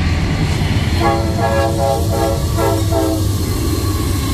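A train horn blares for a couple of seconds.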